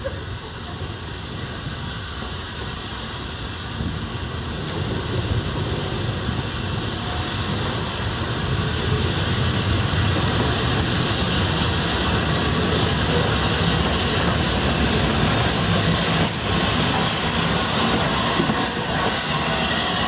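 A steam locomotive chuffs in a steady rhythm, growing louder as it draws near.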